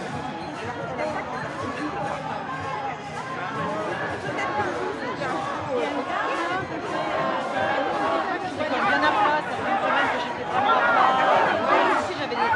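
A large crowd of men and women talks all around outdoors, the voices growing louder.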